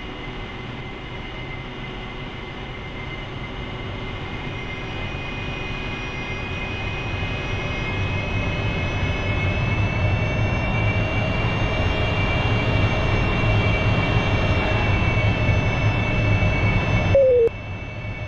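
A jet engine roars and whines steadily, slowly growing louder.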